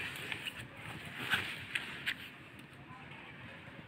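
Paper pages rustle and flip as a notebook is turned.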